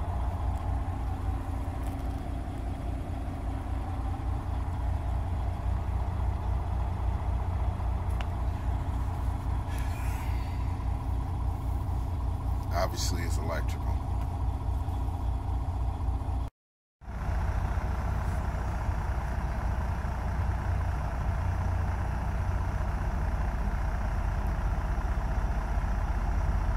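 A truck's diesel engine idles with a steady, low, throbbing rumble.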